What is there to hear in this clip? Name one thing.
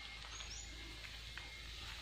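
Footsteps crunch softly on a dry forest path.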